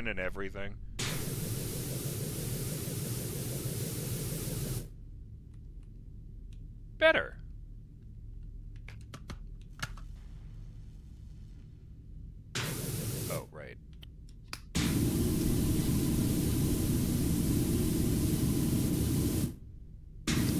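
A pressure washer sprays water with a loud, steady hiss in bursts.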